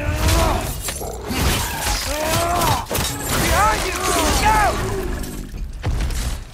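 A large beast roars and snarls loudly.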